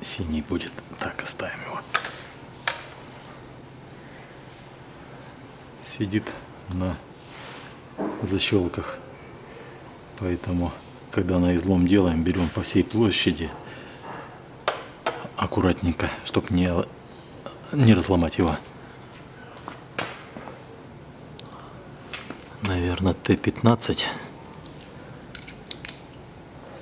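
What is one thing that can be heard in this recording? Plastic parts click and rattle as they are handled.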